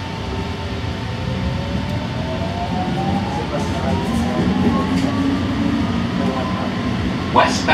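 A train's motor whines, rising in pitch as it speeds up.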